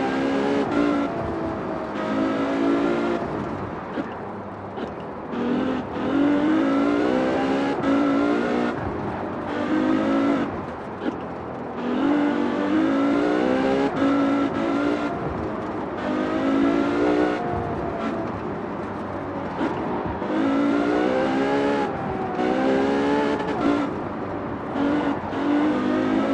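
A high-revving car engine roars, climbing in pitch and dropping sharply with each gear change.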